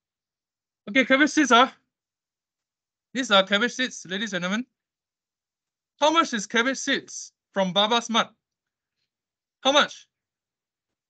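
A young man speaks calmly into a microphone in short phrases with pauses.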